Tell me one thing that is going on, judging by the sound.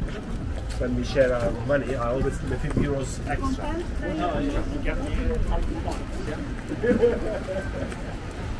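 A young man talks casually as he walks past close by.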